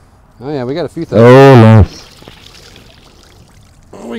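A cast net splashes into the water.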